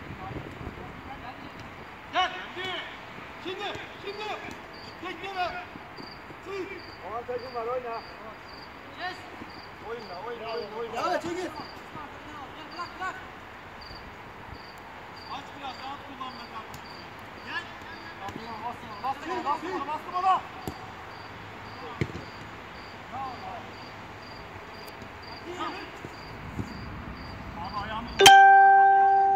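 Young men shout and call to each other across an open pitch.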